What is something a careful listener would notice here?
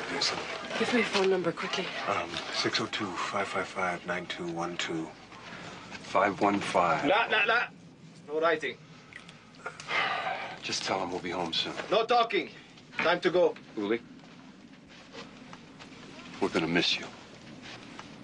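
A man talks tensely nearby.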